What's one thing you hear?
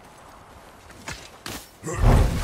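A heavy wooden sled scrapes and thuds as it is shoved.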